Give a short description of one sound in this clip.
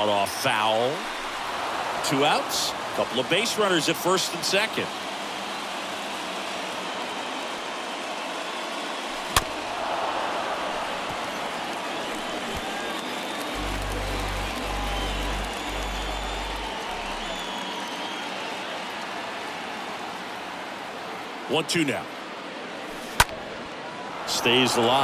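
A stadium crowd murmurs.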